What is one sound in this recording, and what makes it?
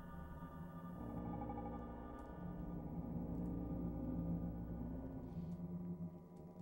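A low droning game soundtrack hums steadily.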